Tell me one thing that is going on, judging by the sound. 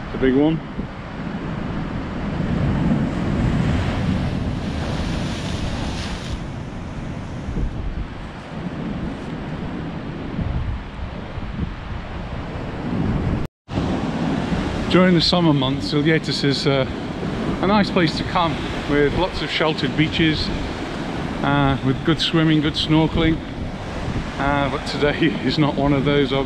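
Waves wash and crash against a rocky shore.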